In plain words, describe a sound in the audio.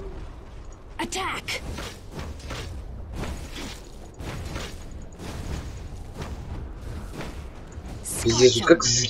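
Game spell effects crackle and clash in a fight.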